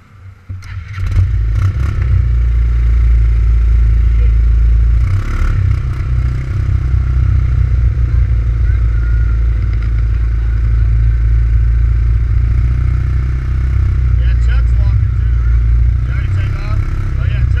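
A motorcycle engine starts and idles with a loud, deep rumble close by.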